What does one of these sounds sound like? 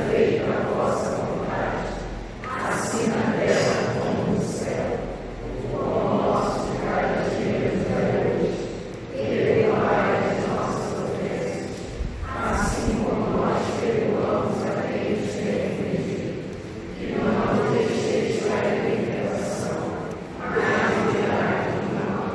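A man speaks steadily through a loudspeaker in an echoing hall.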